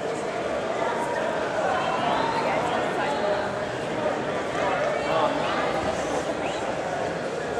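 A large crowd murmurs and calls out in a big echoing hall.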